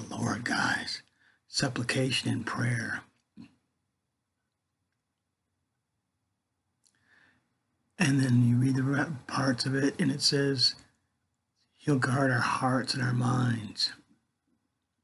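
An older man speaks calmly and close to a microphone, in short bursts with pauses.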